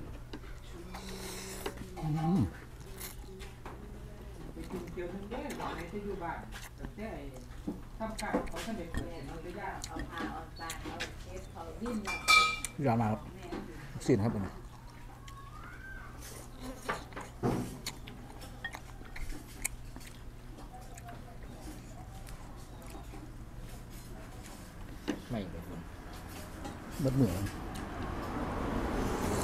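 A man slurps noodles loudly close by.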